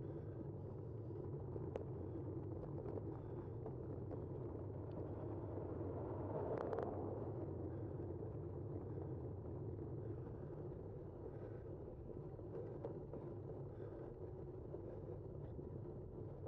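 Tyres roll steadily over asphalt with a low rumble.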